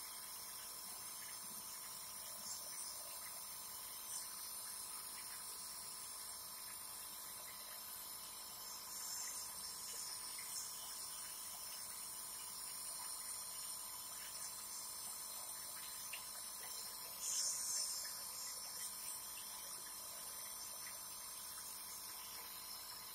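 Mist hisses through a nebulizer mouthpiece.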